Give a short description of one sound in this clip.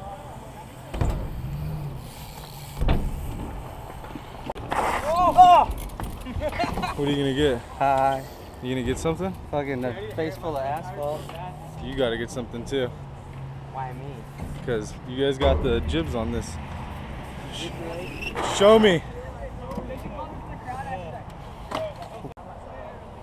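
Bike wheels knock against ramps and rails.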